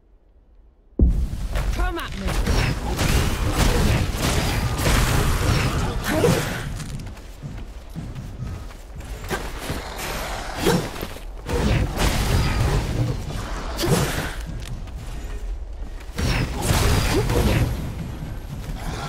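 Game combat clashes and whooshes go on with booming effects.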